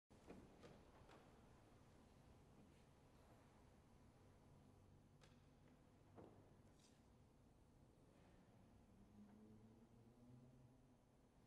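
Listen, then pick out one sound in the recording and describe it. A violin plays a slow melody.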